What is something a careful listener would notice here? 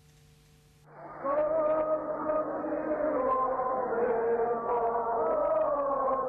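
A large crowd sings together outdoors.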